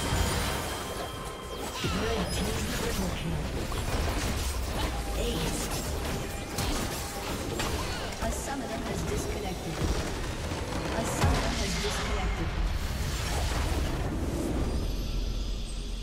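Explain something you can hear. Game spells and attacks crash and burst in quick succession.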